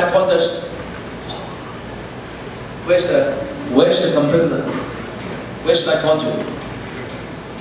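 A man speaks with animation through a microphone in a large echoing room.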